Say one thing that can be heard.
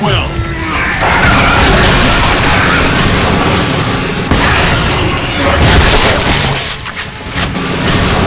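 A heavy gun fires rapidly in loud bursts.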